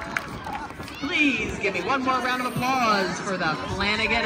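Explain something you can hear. A crowd cheers and shouts from the stands.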